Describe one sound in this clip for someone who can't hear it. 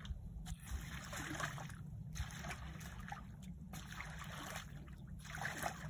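Muddy water sloshes and splashes.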